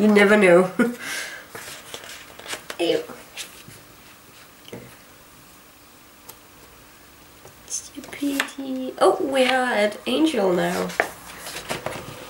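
Stiff glossy pages of a book turn with a soft rustle.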